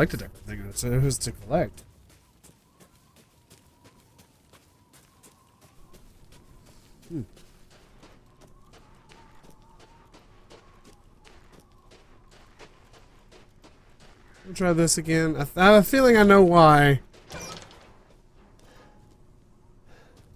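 Footsteps crunch through snow and dry grass.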